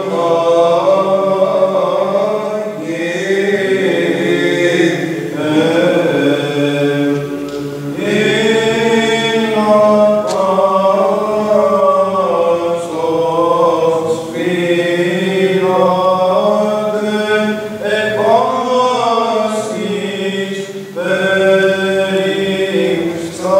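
A choir of men chants together in a large echoing hall.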